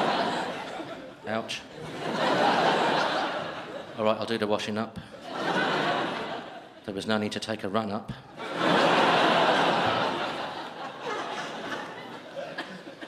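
An audience laughs loudly in a room.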